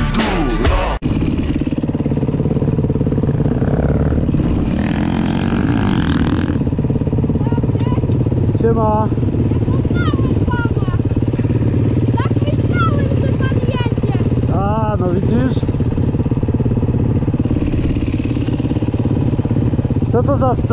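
A dirt bike engine runs with a steady, buzzing drone.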